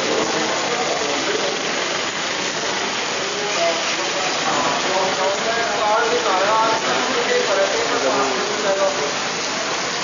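Strong wind gusts through trees.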